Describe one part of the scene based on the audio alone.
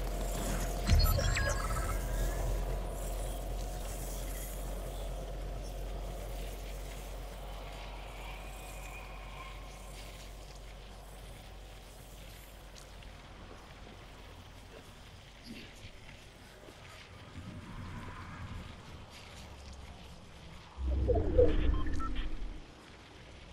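Heavy footsteps crunch on dry dirt.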